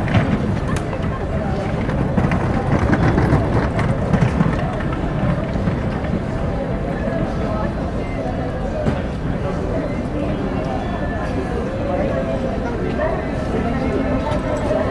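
Outdoor street noise hums steadily.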